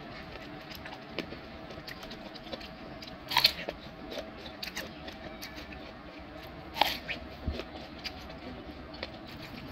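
A woman chews crisp pear with wet crunching, close up.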